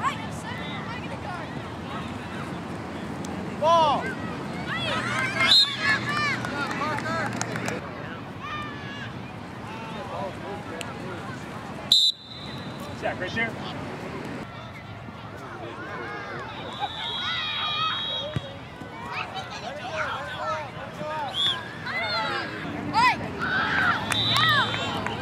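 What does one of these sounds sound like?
Adults on the sidelines cheer and shout encouragement.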